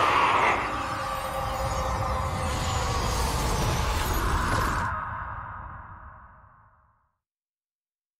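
A magical energy blast roars loudly and then fades away.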